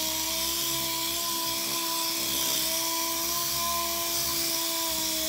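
A pneumatic sander whirs steadily against metal.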